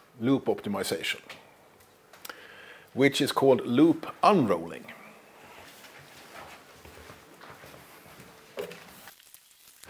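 A middle-aged man speaks out loud, as if lecturing, in a room with some echo.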